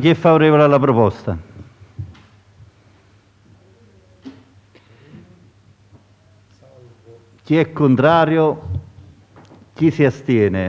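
A man speaks through a microphone in an echoing hall, calling out slowly.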